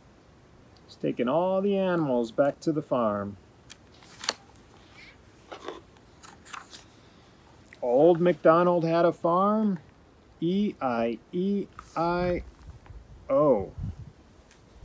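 A man reads aloud calmly, close by.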